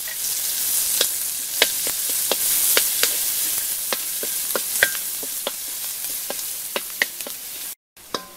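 A wooden spatula scrapes and taps against a metal wok.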